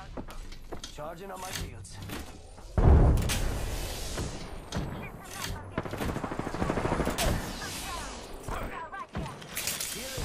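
A shield cell charges.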